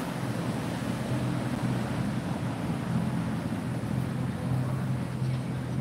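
A car drives past on a wet street, its tyres hissing.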